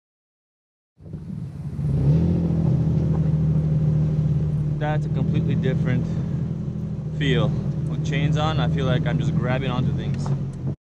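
A car engine hums steadily as the car drives slowly.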